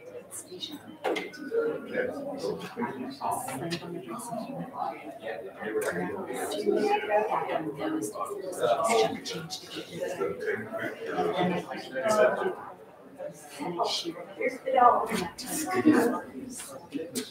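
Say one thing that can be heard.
Several men and women talk quietly in a large room.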